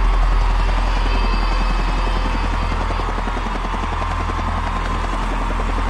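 Water churns and splashes around a giant robot's legs.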